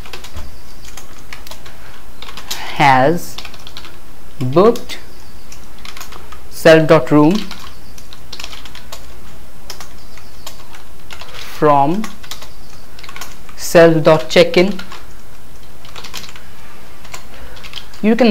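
Keys click softly on a keyboard.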